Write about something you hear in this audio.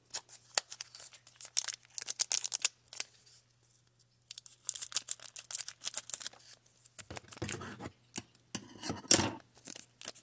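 Foil wrappers crinkle and rustle close by.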